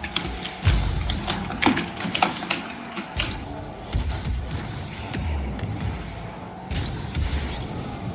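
A game car's boost roars.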